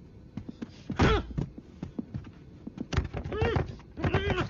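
A man shouts out in strain.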